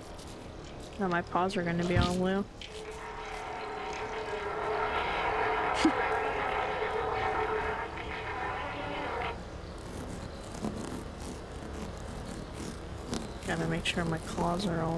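A cat meows loudly several times.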